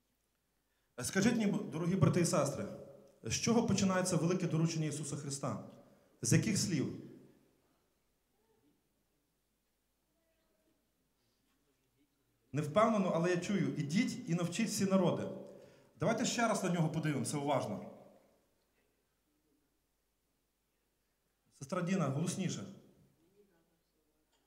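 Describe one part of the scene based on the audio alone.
A man speaks calmly through a microphone, with long pauses.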